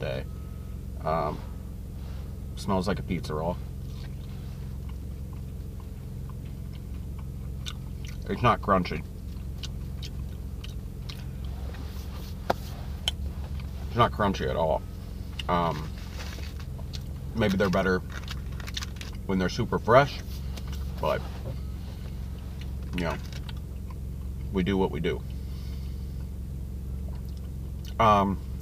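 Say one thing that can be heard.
A man talks calmly and close by in short bursts.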